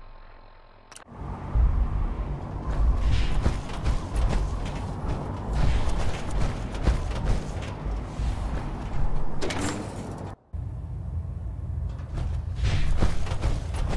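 Heavy metal footsteps clank steadily on a metal walkway.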